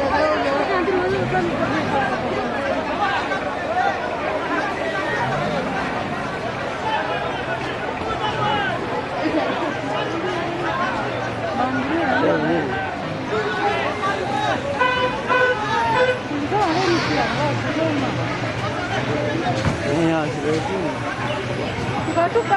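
A large crowd of men chatters and shouts outdoors.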